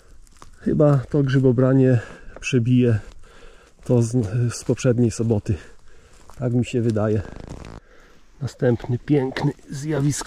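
Footsteps crunch on dry twigs and needles.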